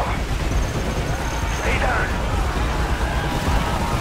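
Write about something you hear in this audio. A helicopter's rotor thuds loudly overhead.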